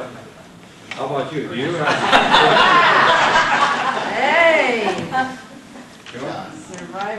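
A man speaks with animation, gesturing to a group.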